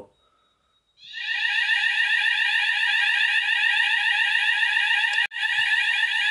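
A fire alarm sounds loudly and steadily.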